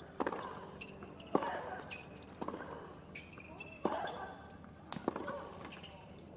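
Sneakers squeak on the hard court.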